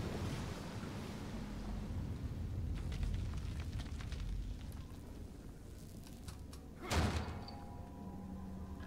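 Footsteps crunch over debris and rubble.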